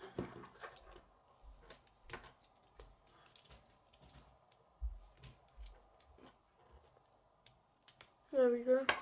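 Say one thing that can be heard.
Plastic construction pieces click and clack as hands fit them together.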